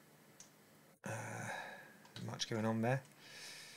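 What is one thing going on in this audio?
A man talks casually into a close microphone.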